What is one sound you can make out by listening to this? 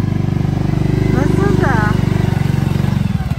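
A young woman speaks briefly nearby, over the engine.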